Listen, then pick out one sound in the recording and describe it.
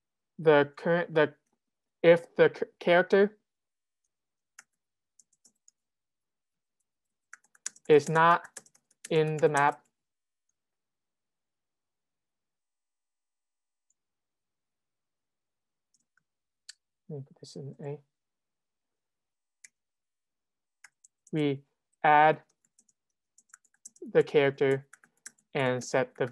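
A young man talks calmly into a close microphone, pausing now and then.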